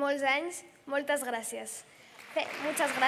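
A teenage girl speaks calmly into a microphone in a large echoing hall.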